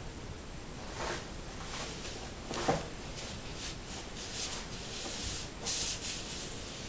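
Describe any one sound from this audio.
Hands rub and press soft foam sheets, making soft rustling sounds.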